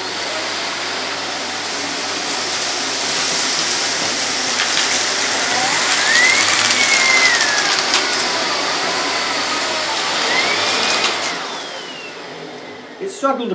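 A vacuum cleaner runs with a loud steady roar, then winds down.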